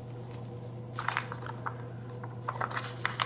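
A sheet of stickers rustles as it is handled.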